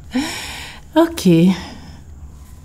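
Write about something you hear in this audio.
A woman speaks with animation and laughs.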